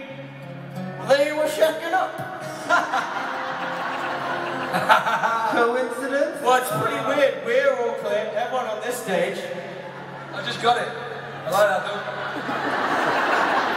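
A man sings through loudspeakers in a large echoing hall.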